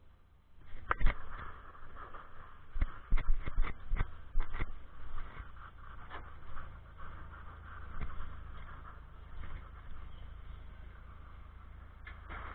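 Fabric rubs and bumps against a microphone at close range.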